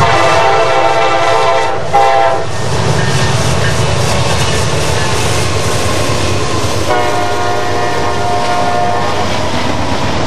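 A diesel locomotive blasts its air horn.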